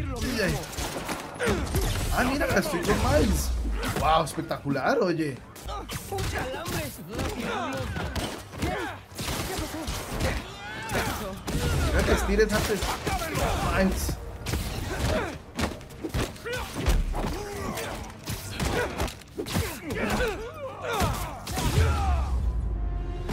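Punches and kicks thud in a fight.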